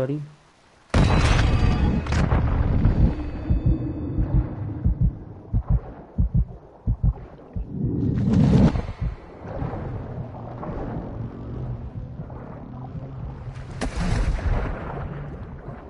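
Muffled underwater bubbling and rumbling goes on steadily.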